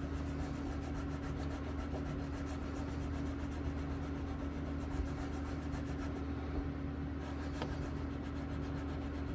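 Fingers rub and press masking tape down with a soft scratching.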